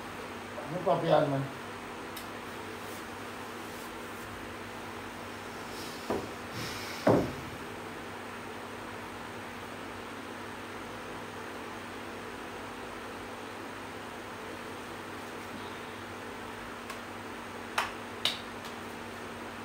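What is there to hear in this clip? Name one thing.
An electric fan hums steadily close by.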